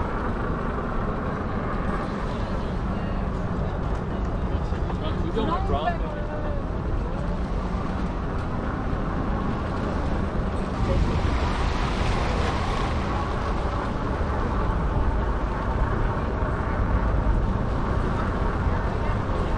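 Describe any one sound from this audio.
Wind rumbles steadily against the microphone while moving along outdoors.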